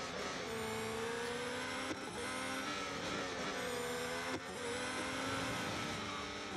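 A racing car engine screams at high revs, with sharp drops at gear changes.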